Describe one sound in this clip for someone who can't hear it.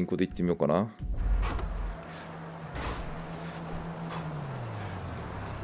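Bicycle tyres roll along a city street.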